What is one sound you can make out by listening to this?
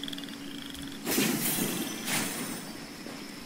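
Magical chimes and sparkles ring out.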